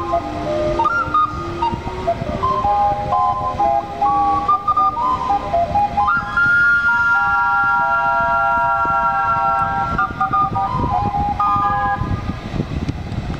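A steam calliope plays a loud, bright tune.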